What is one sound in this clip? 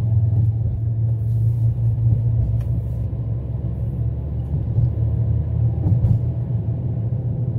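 A car engine hums steadily from inside.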